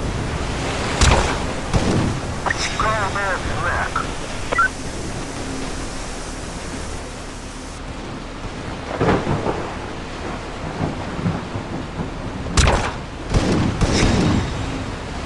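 Gunshots crack in short bursts.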